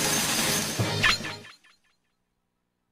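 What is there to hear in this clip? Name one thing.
A bright chime rings as the counting ends.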